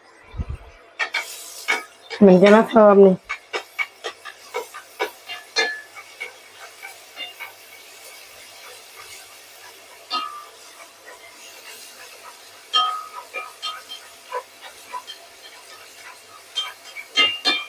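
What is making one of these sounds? Garlic sizzles and crackles in hot oil in a pan.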